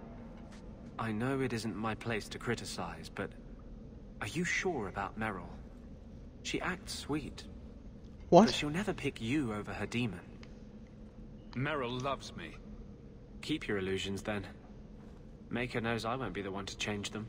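A man speaks calmly and close by, in a warning tone.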